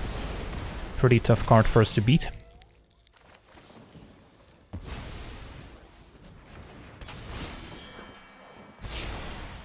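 A magical whoosh and shimmer ring out.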